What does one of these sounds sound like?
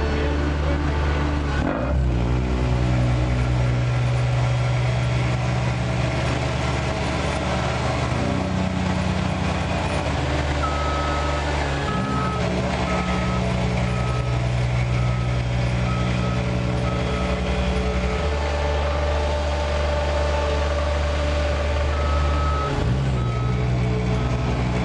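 The diesel engine of a small tandem asphalt roller rumbles as it rolls over fresh asphalt.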